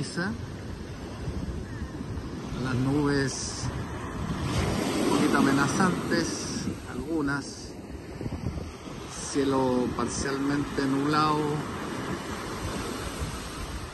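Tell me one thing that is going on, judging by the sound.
Small waves wash and break onto a sandy shore.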